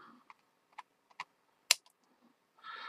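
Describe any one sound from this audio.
Small pliers snip with a sharp click.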